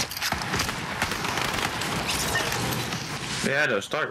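Wooden walls snap quickly into place.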